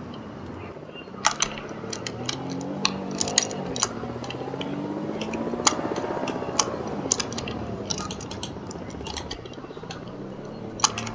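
A car engine hums and revs up and down while driving.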